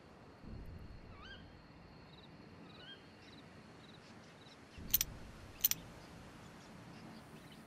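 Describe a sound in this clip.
A campfire crackles softly in the distance.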